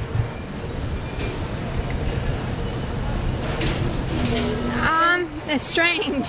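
City traffic rumbles steadily in the background.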